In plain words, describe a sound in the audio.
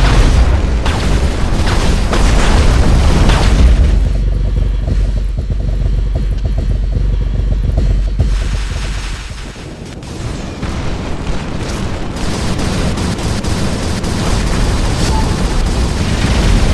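Large robot footsteps thud heavily.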